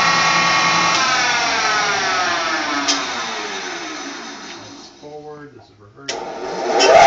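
A milling machine motor winds down and slows to a stop.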